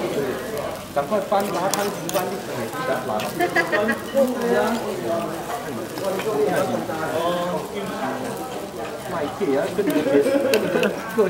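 Hot food sizzles in a stone bowl.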